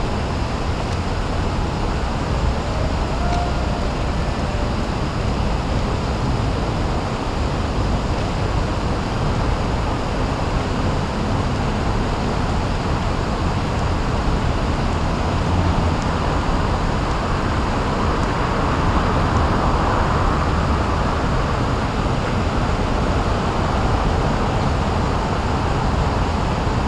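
Water rushes steadily outdoors.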